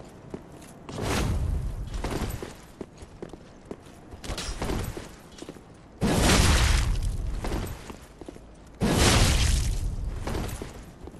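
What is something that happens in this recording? Swords clash and strike in bursts of combat.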